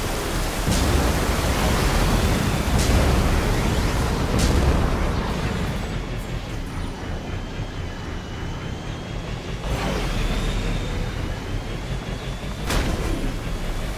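Thrusters whoosh in short bursts.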